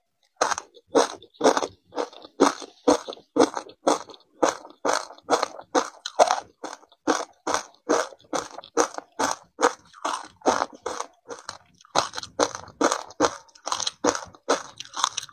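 A woman crunches ice close to a microphone.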